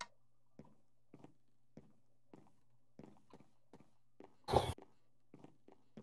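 Footsteps tap steadily on a wooden floor.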